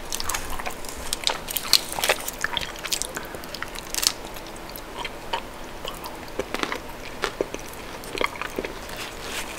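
A chocolate wrapper crinkles in fingers close to the microphone.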